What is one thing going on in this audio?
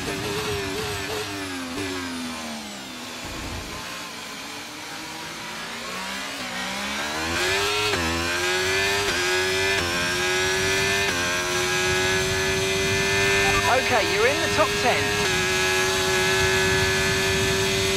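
A racing car engine whines, dropping in pitch as it slows and rising as it speeds up through the gears.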